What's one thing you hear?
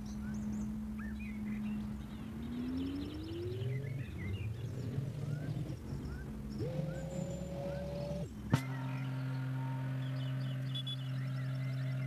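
A car engine hums and revs up.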